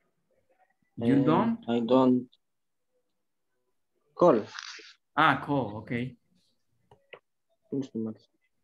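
A young man speaks calmly and close to the microphone, in short bursts with pauses.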